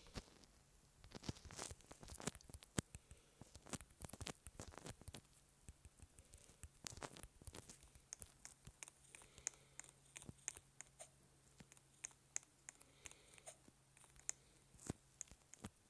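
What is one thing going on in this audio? Soft taps sound on a phone's touch keyboard.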